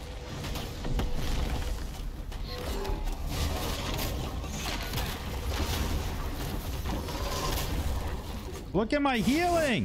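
Fire roars and blasts crackle in a noisy fight.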